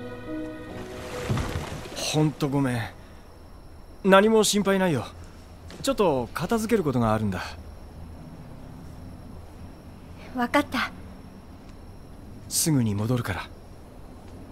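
A young man speaks calmly and gently.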